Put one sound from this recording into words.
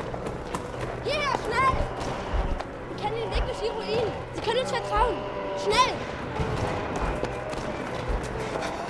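Children call out urgently.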